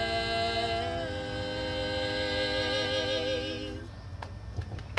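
Young women sing together into a microphone through a loudspeaker, outdoors.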